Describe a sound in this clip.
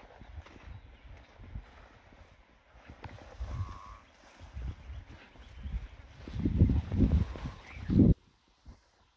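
Leafy branches rustle and scrape as people push through dense bushes.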